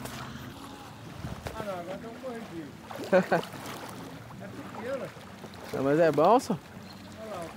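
A paddle dips and splashes in water.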